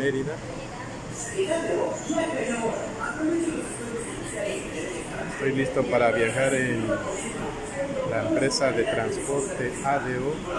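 Several men and women chatter nearby.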